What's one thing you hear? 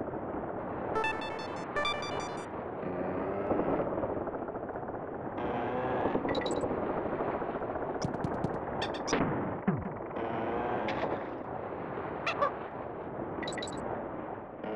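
Short bright electronic chimes ring out now and then.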